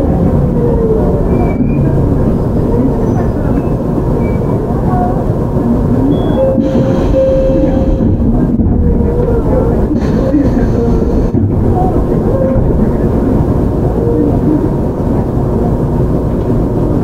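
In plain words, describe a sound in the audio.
A train rumbles along the tracks with a steady, heavy roar.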